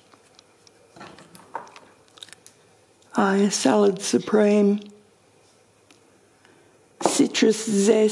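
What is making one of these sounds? Glass spice jars clink softly as a hand moves them on a wooden shelf.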